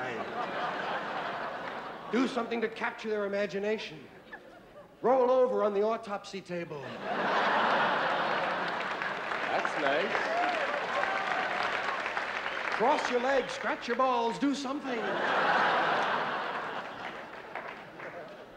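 A large audience laughs in a big hall.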